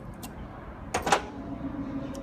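Metal pliers clank down onto a metal table.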